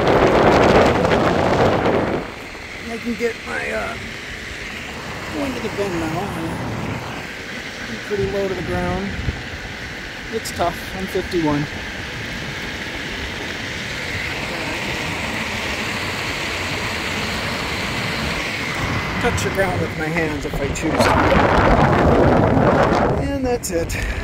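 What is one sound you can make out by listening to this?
Wind rushes loudly past while riding outdoors.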